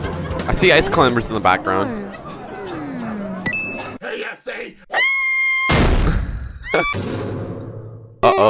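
A young man talks with animation, close to a headset microphone.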